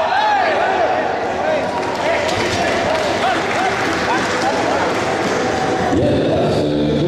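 Several men shout loud encouragement in a large echoing hall.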